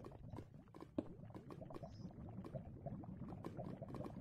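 Fire crackles softly nearby.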